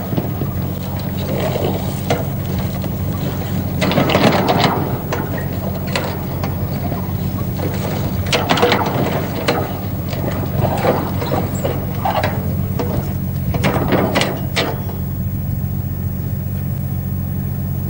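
A heavy track machine rumbles steadily along a railway line.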